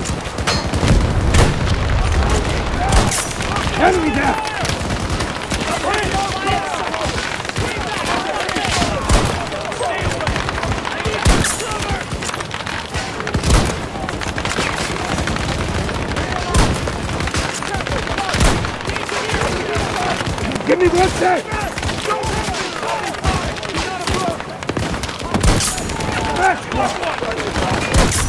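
Distant gunfire and explosions rumble on and off.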